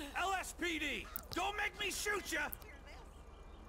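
A young woman protests in a raised, upset voice.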